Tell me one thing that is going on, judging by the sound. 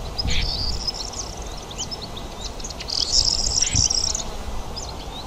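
A small bird sings a fast, scratchy, chattering song close by.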